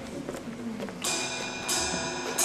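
An electric guitar strums a ringing chord through an amplifier.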